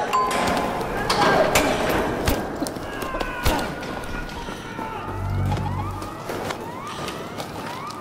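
Heavy blows thud and thump during a close scuffle.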